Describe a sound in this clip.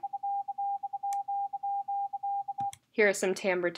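A pure beeping tone plays in short and long pulses, like a morse rhythm.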